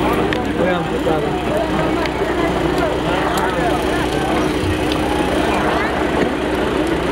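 A large crowd of men shouts and calls out outdoors.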